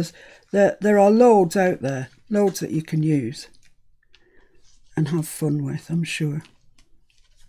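An older woman talks calmly and close to a microphone.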